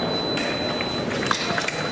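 Fencing blades clash with sharp metallic clicks.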